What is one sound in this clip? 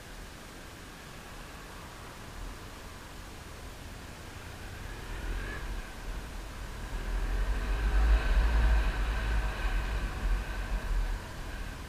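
Wind rumbles against the rider's microphone.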